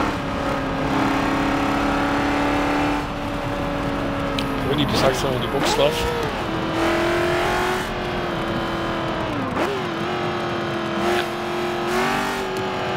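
A racing car engine roars steadily, its pitch dropping and rising as gears change.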